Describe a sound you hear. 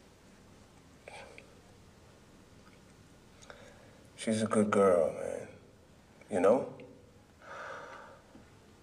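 A man speaks in a low, tense voice into a phone handset, in short bursts.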